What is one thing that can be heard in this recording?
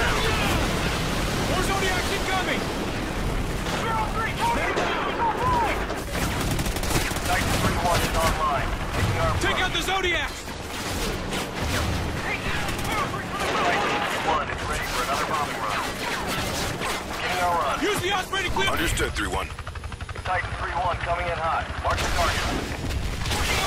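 Rifle gunfire crackles in rapid bursts.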